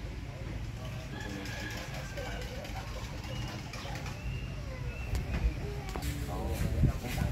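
Men talk casually nearby, outdoors.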